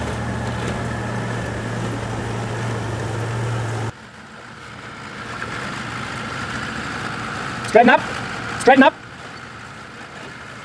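An off-road vehicle's engine rumbles steadily as it crawls over rocks.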